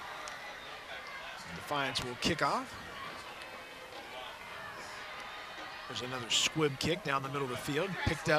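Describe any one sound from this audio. A crowd murmurs and cheers from the stands outdoors.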